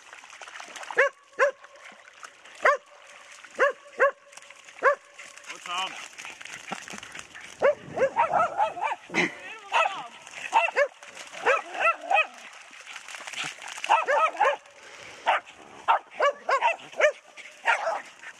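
Dogs bark sharply and repeatedly nearby.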